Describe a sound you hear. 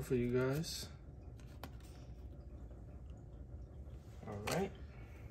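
Trading cards rustle and tap softly as they are handled.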